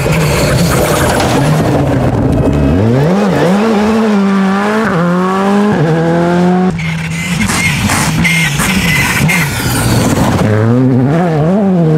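Gravel sprays and crunches under a car's tyres.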